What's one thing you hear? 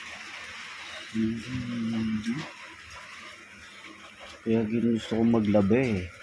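Paper money crinkles in a hand.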